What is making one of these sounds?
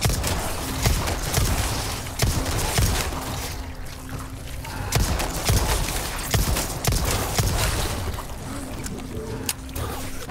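Pistol shots crack repeatedly.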